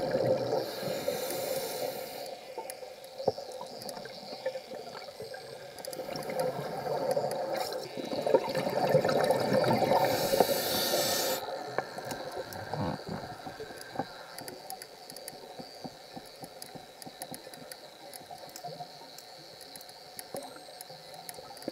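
Water crackles and hisses with a muffled, hollow underwater sound.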